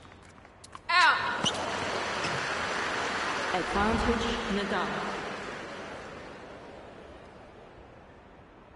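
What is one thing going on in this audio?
A crowd cheers and applauds, then fades away.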